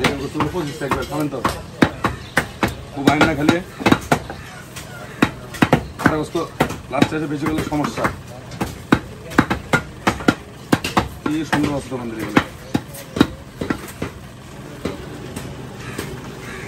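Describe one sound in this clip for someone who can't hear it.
A cleaver chops through beef onto a wooden chopping block.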